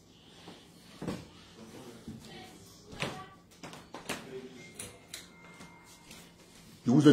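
Knocks and bumps sound close by as a man moves about.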